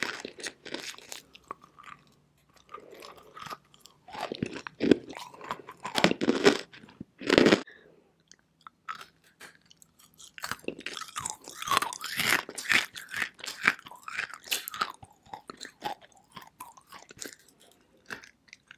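A young woman bites and crunches chalky rock close to the microphone.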